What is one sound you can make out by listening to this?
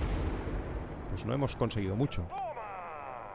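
A rocket launches with a loud whoosh.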